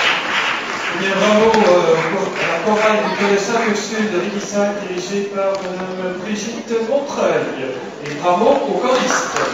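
A man speaks calmly through a microphone over a loudspeaker in a large hall.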